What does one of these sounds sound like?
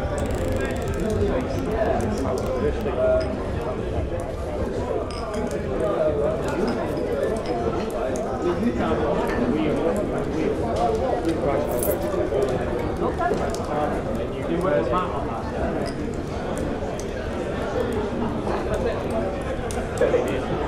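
A crowd of men and women chatter and murmur.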